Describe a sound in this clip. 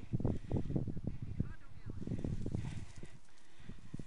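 Wind blows across an open field outdoors.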